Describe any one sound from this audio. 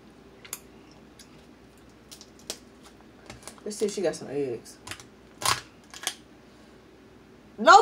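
Crab shells crack and snap as they are broken apart.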